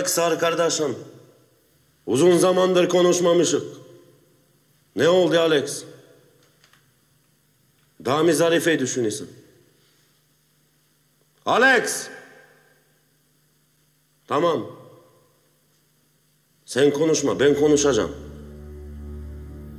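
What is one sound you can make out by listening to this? A second man answers in a low, calm voice.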